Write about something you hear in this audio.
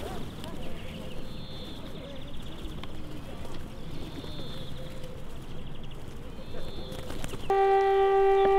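Pigeons coo nearby.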